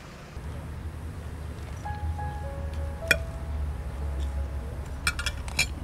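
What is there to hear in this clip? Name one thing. A fork and knife clink against a plate.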